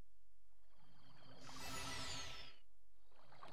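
A magical shimmer swells and fades.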